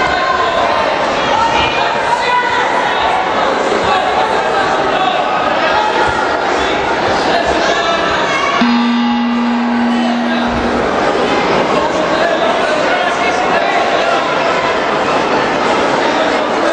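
A large crowd chatters and calls out in an echoing hall.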